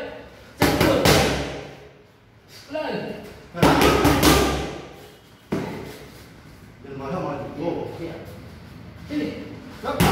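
Gloved punches smack hard against pads, ringing in an echoing hall.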